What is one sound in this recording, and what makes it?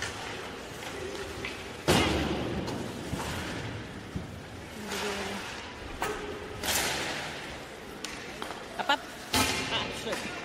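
Pucks and sticks clack against the ice and the boards.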